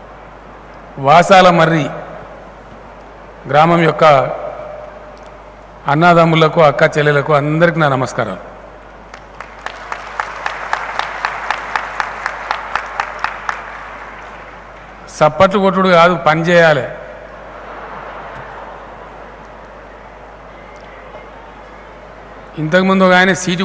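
An elderly man speaks in short bursts through a microphone and loudspeakers.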